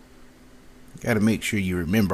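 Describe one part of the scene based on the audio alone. A young woman speaks calmly close to a microphone.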